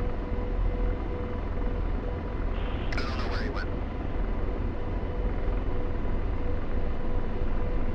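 A helicopter engine and rotor drone steadily from inside the cockpit.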